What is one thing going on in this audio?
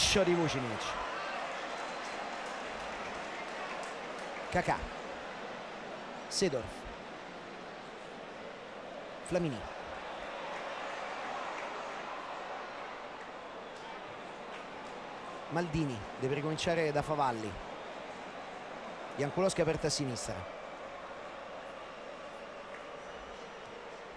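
A large stadium crowd murmurs and chants steadily in the distance.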